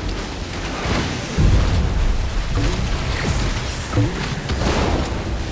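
Water splashes and sprays.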